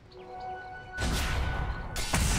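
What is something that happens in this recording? Weapons clash and magic blasts burst in a loud battle.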